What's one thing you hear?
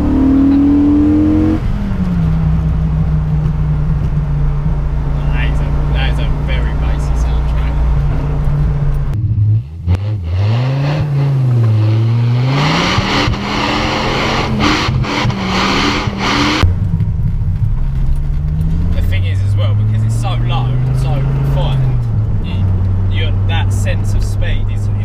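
A car engine drones loudly inside the cabin, its pitch rising and falling as it revs.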